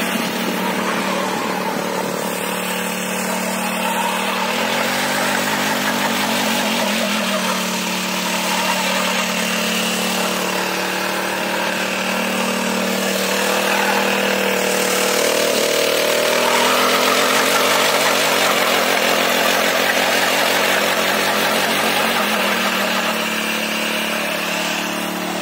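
Tiller blades churn through dry soil.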